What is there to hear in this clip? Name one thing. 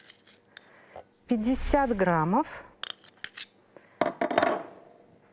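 A knife scrapes butter and taps against a glass bowl.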